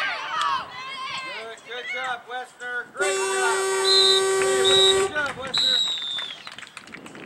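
Spectators shout and cheer close by.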